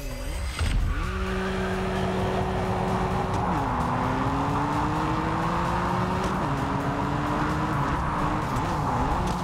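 A car engine roars as the car accelerates, shifting up through the gears.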